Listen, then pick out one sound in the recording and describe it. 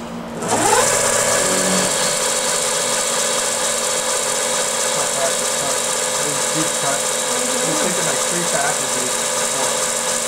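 A cutter grinds into metal.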